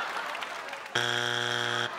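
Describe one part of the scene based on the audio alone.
A loud buzzer blares.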